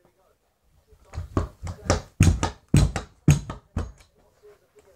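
A scooter deck and wheels clatter and thump on a carpeted floor.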